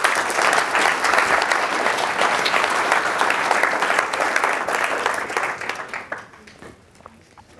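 An audience applauds in a large hall and the applause fades.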